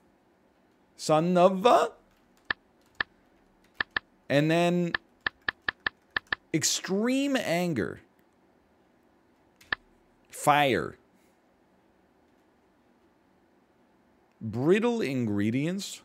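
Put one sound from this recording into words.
A man talks calmly and thoughtfully into a close microphone, in short bursts.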